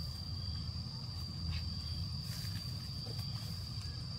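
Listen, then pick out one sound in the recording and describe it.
Dry grass crunches underfoot.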